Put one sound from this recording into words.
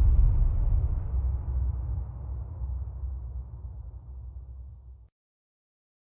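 Bass-heavy music plays from turntables and slowly fades out.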